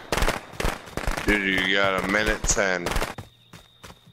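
Quick footsteps run over the ground.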